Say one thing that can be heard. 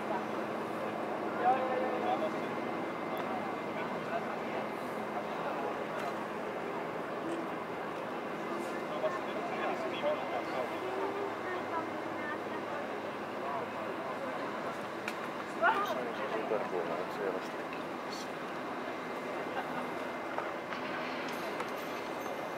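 Men talk at a distance outdoors.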